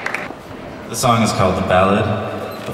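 A man sings into a microphone outdoors.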